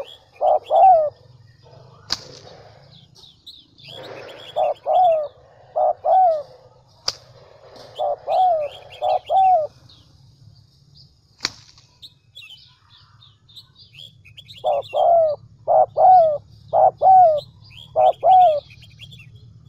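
A dove coos in soft, repeated phrases close by.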